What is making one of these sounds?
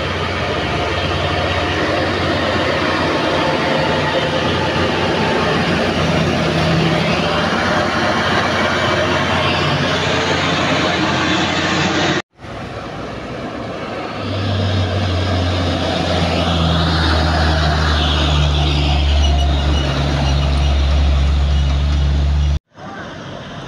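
A heavy truck engine rumbles loudly close by.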